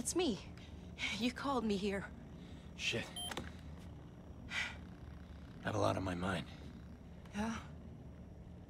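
A young woman speaks quickly and defensively.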